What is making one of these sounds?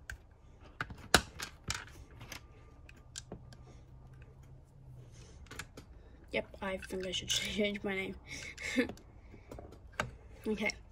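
Plastic toy bricks click and snap together close by.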